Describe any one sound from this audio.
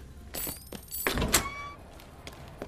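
A metal door bangs open.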